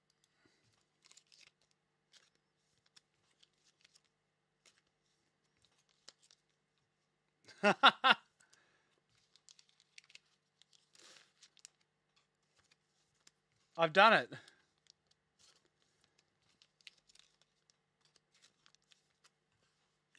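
Card packs rustle and crinkle softly in hands.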